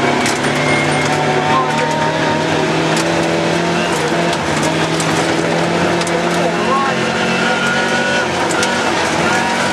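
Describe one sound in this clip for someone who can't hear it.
A rally car engine roars loudly from inside the cabin, revving up and down.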